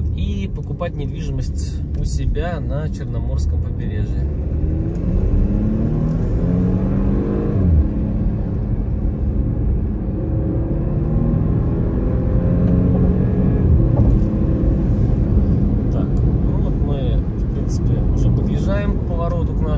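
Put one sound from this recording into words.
A car drives steadily along a road, with tyres rumbling.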